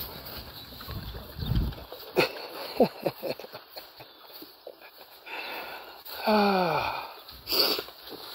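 Pigs grunt close by.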